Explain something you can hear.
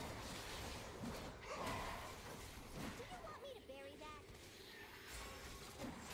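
Video game spell effects whoosh and clash in a battle.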